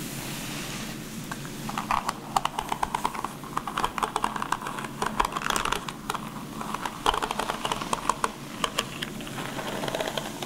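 Fingers tap and flick lightly through hair with crisp crackles.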